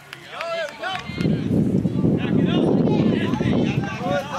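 A crowd of spectators shouts and cheers loudly outdoors.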